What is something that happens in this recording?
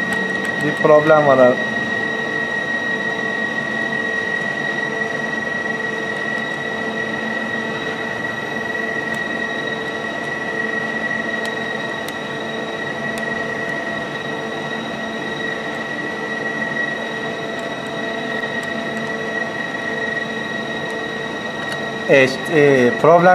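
A machine hums steadily nearby.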